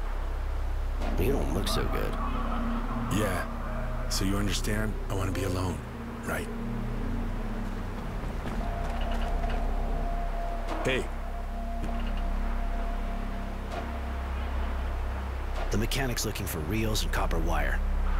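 A man speaks calmly in a low voice, close by.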